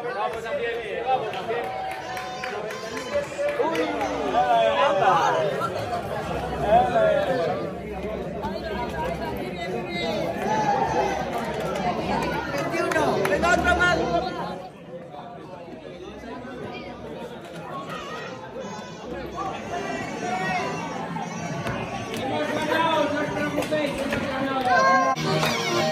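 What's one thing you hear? A crowd of men and women talk and call out with animation nearby, outdoors.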